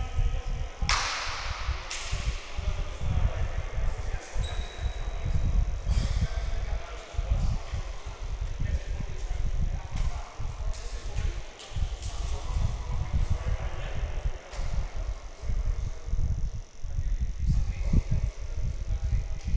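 Basketballs bounce on a wooden floor, echoing in a large hall.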